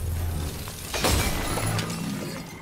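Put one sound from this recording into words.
A heavy blade swings and strikes with a loud impact.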